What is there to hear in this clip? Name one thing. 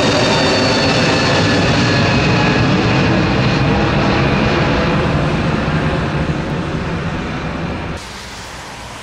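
A jet airliner roars loudly overhead, its whining engines slowly fading.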